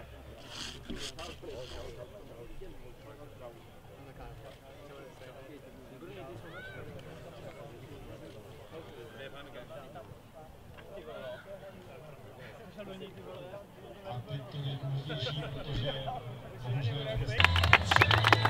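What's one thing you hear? Men murmur and talk quietly nearby outdoors.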